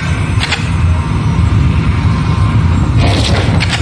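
Building pieces clatter into place.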